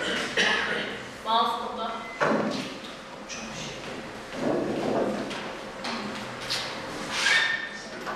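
Footsteps cross a hard floor.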